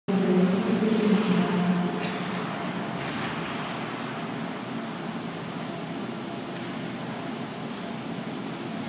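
Skate blades glide and scrape across ice.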